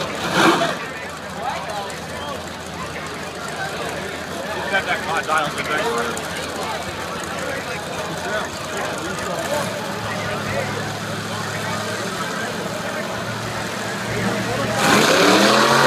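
Race car engines idle and rumble loudly.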